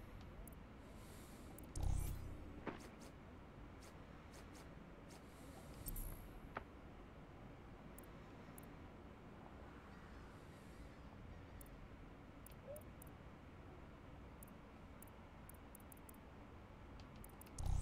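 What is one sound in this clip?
Short soft menu clicks tick now and then.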